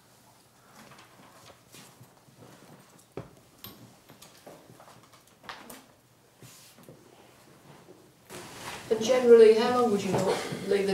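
A man speaks close by, quietly at first, then loud and clear.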